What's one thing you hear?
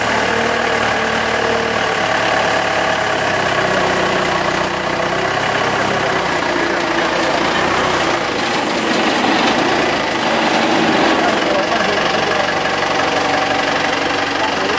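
A forklift engine rumbles steadily close by.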